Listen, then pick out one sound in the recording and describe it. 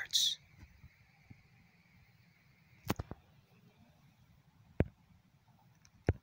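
A young man speaks quietly close to the microphone.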